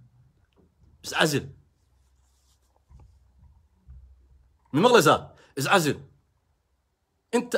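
A young man speaks in short bursts, close to the microphone.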